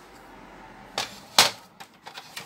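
A paper trimmer clacks down onto a table.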